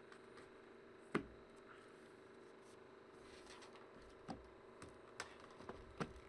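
Cardboard boxes tap and knock on a table.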